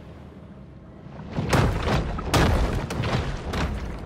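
Sparks crackle and burst underwater.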